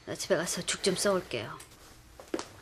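A middle-aged woman speaks firmly, close by.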